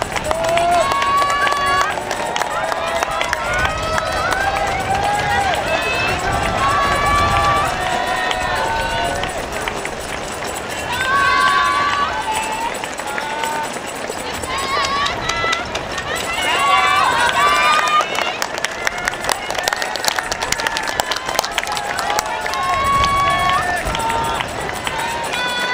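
A crowd of spectators cheers and shouts encouragement nearby outdoors.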